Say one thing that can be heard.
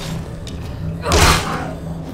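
A sword clashes with a loud sudden clang.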